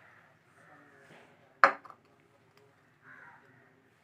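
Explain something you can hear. A ceramic bowl knocks against a plate.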